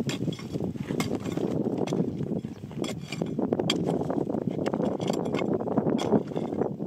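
A hand tool digs and scrapes into stony ground.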